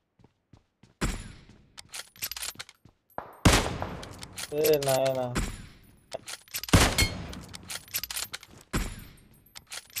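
Rifle shots crack loudly, several times.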